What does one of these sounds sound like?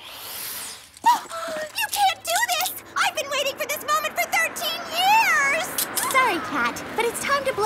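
A young girl speaks in a whiny, complaining voice.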